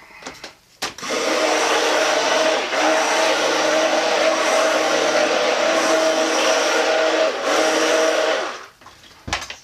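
A hand blender whirs steadily as it blends.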